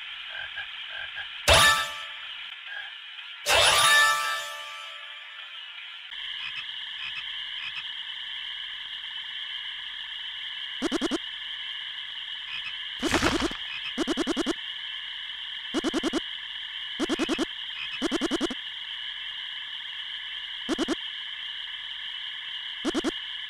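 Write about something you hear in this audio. Chiptune game music plays steadily throughout.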